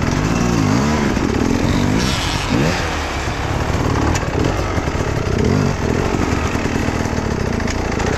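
Another dirt bike engine revs hard nearby, straining uphill.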